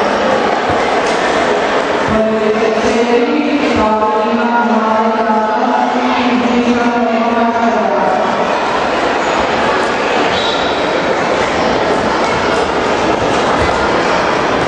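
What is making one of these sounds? A crowd murmurs and chatters in a large echoing hall.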